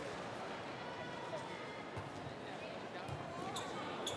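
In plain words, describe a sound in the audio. A volleyball is struck hard with a hand.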